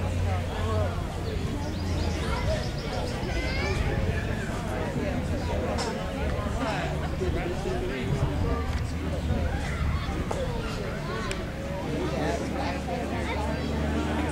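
Several men talk with one another nearby, outdoors.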